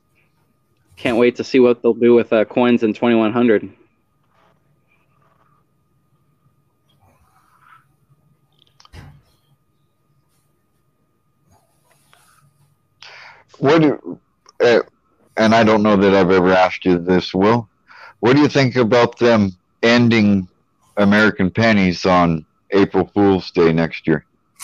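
A man talks casually over an online call.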